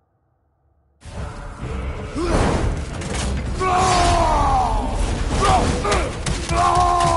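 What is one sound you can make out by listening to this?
Weapons clash and thud in a loud, heavy fight.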